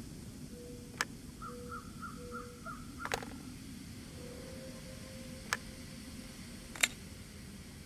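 Sharp clicks sound now and then.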